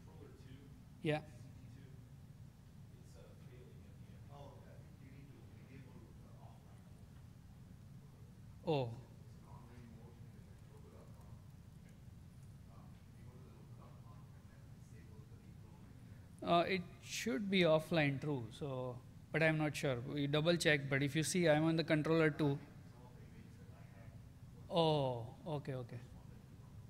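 A man speaks calmly into a microphone in a large hall, pausing often.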